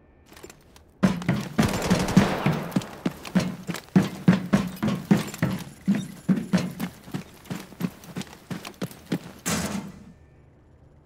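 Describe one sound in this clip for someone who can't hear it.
Footsteps thud quickly on a hard floor and up stairs.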